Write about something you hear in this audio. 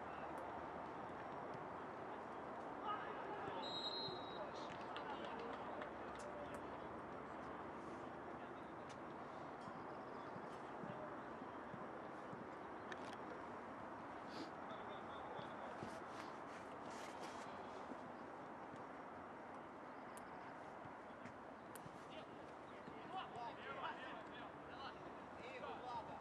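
Distant voices of players call out across an open field outdoors.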